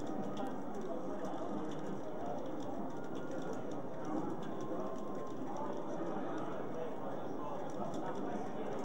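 A crowd of young people chatters loudly in a large room.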